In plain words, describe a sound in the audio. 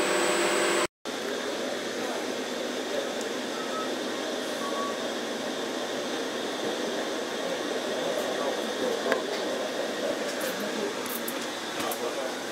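A train hums steadily as it rolls along.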